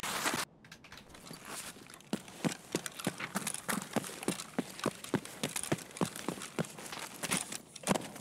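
Footsteps tap on a hard floor indoors.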